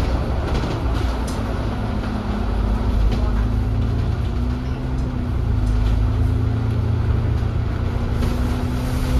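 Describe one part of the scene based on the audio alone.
A bus engine hums steadily from inside while driving.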